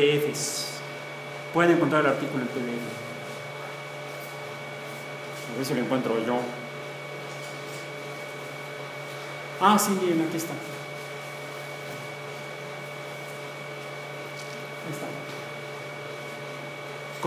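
A projector fan hums steadily.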